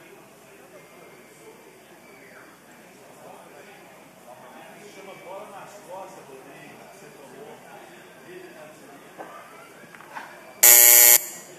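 Many people murmur softly in a large hall.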